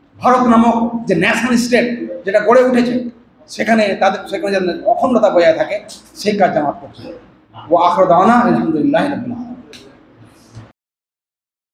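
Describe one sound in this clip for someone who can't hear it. An elderly man speaks with animation through a microphone and loudspeakers.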